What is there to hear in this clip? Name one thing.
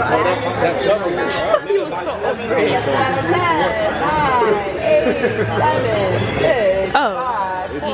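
Young adults talk and laugh together nearby, with animation.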